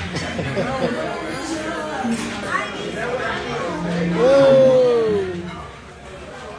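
A young man laughs.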